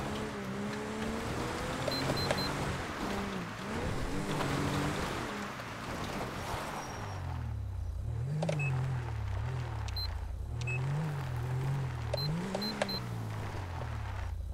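A police siren wails up and down.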